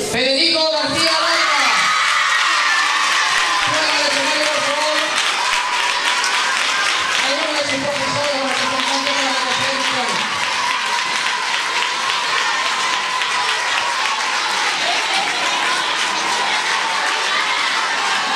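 A large crowd cheers loudly in a big echoing hall.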